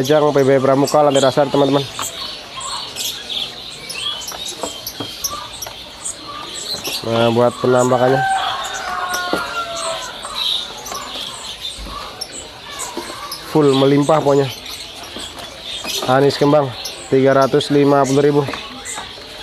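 A bird sings loudly nearby in bursts of clear, buzzing calls.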